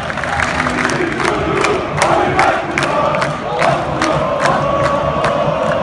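A crowd of fans claps in rhythm.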